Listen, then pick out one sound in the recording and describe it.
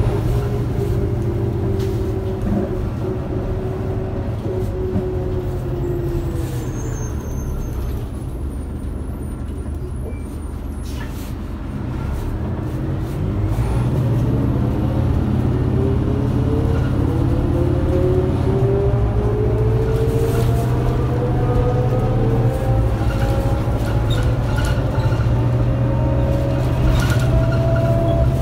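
Bus panels and fittings rattle and clatter.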